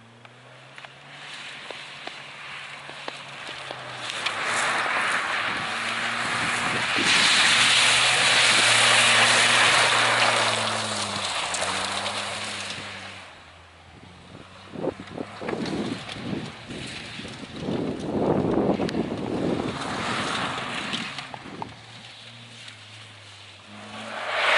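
A car engine revs hard and changes pitch as it races past.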